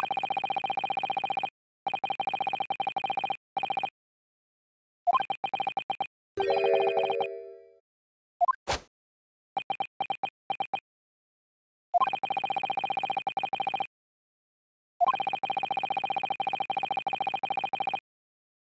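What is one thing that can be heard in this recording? Quick, even beeps chatter in short bursts.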